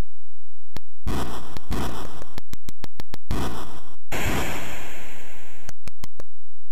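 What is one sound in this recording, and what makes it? Harsh electronic noise bursts crash as boulders tumble in a game.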